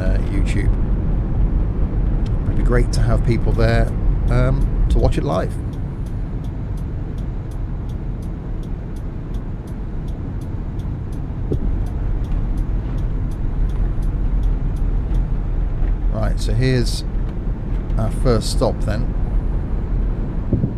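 A bus engine hums low and steady as it drives.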